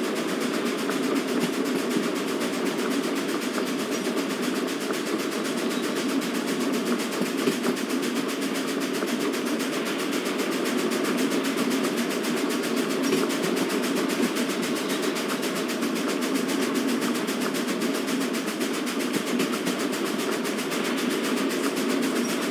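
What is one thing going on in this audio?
A steam locomotive chugs steadily along the track.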